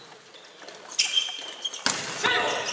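Sneakers squeak on a hard court.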